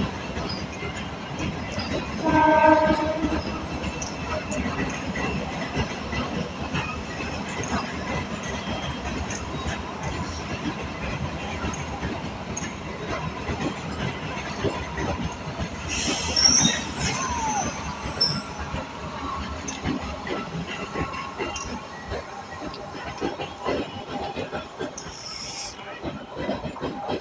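A passenger train rumbles past close by, its wheels clattering on the rails.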